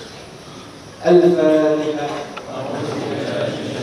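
A man chants a prayer aloud in a slow, drawn-out voice.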